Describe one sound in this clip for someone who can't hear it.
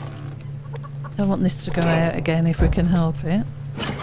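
A fire crackles softly in a stove.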